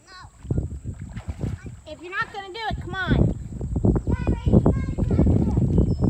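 Water splashes as a swimmer paddles nearby.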